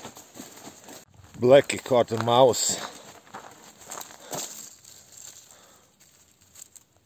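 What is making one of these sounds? A dog rustles through dry leaves.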